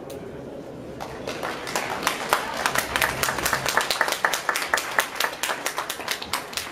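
Spectators clap their hands rapidly.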